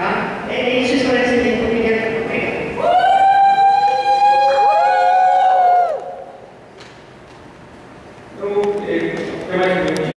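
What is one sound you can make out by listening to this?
A man speaks through a microphone and loudspeaker in a large echoing hall.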